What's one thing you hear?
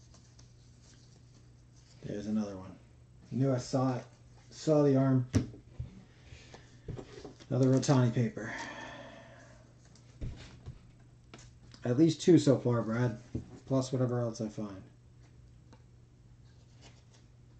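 Stiff trading cards rustle and flick as they are shuffled by hand.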